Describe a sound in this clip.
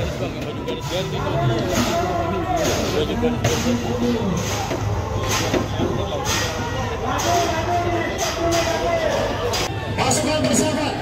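A crowd of men shout and yell chaotically nearby.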